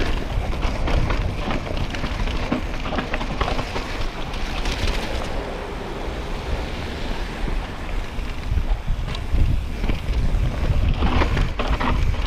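A bicycle chain and frame clatter over bumps.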